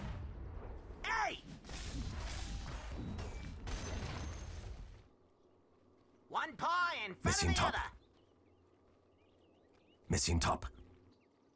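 Short chiming spell effects ring out.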